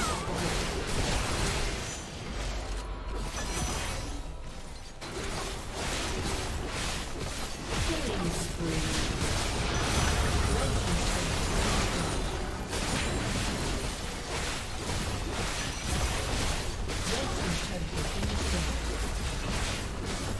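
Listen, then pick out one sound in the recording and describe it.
Fantasy battle sound effects crackle, clash and boom in a busy fight.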